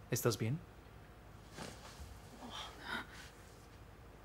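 Bedding rustles as a woman shifts on a bed.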